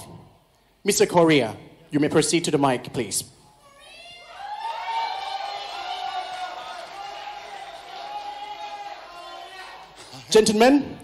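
A young man speaks loudly into a microphone, heard through loudspeakers in a large hall.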